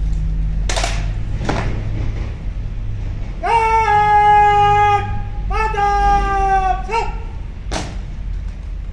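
Rifle butts and boots thump in unison on hard ground.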